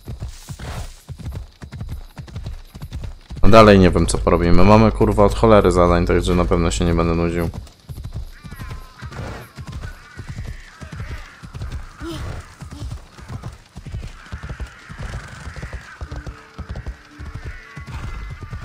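Horse hooves clop steadily at a trot.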